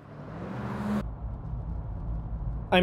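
A truck engine rumbles low, heard from inside the cab.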